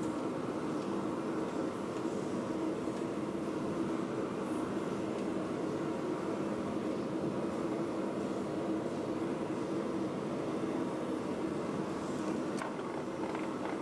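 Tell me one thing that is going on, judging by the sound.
A gas forge roars steadily in the background.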